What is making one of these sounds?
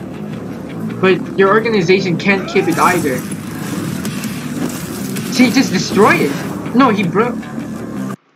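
A teenage boy talks with animation close to a microphone.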